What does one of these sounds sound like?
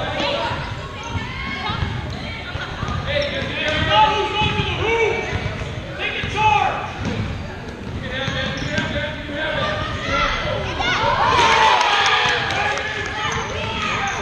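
Shoes squeak sharply on a hard floor in a large echoing hall.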